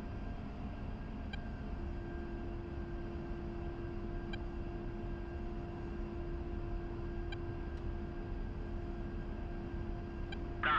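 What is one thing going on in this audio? A jet engine hums and rumbles steadily as an aircraft rolls along a runway.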